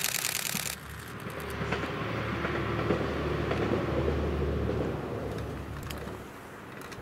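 A train rumbles along the tracks in the distance.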